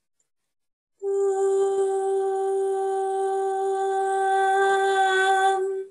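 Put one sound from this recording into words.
A woman hums a long, steady note over an online call.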